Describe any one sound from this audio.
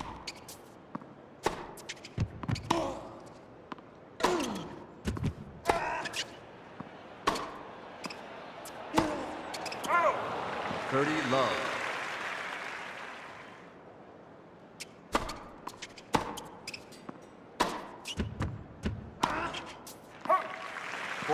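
A tennis ball is struck back and forth with sharp pops of a racket.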